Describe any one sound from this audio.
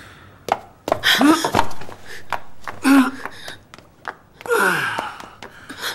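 A man cries out in pain in a large echoing room.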